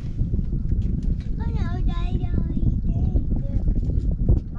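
A young child talks excitedly in a high voice.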